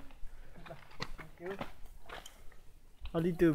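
Footsteps crunch on loose rocky ground.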